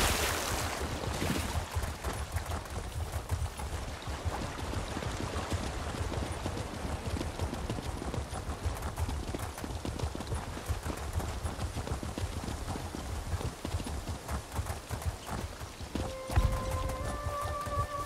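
Hooves clatter quickly on stone as a mount gallops.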